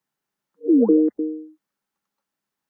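A short electronic chime of a few notes plays.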